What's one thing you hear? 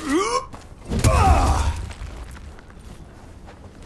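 A heavy metal weapon swings and thuds.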